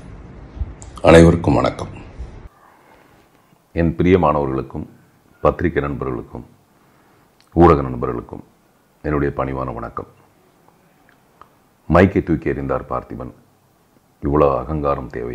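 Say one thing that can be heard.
A middle-aged man speaks calmly close to a microphone, in short phrases with pauses.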